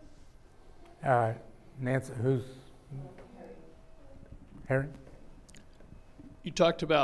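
A man speaks calmly and haltingly into a microphone.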